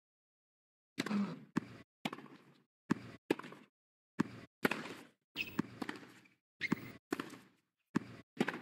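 A tennis ball is struck hard by rackets, back and forth.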